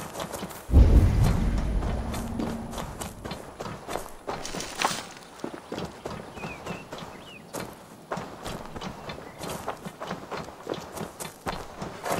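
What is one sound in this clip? Footsteps crunch and rustle through dry leaves and undergrowth.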